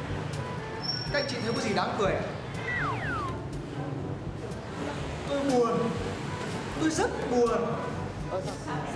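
A young man speaks with animation, close by.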